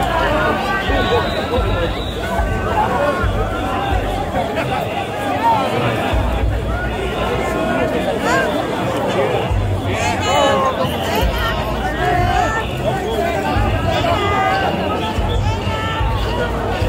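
A large crowd of men chant and shout loudly in rhythm, close by, outdoors.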